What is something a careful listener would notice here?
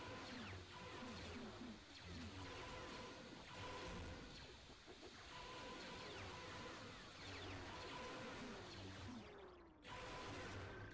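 Blaster shots zap repeatedly.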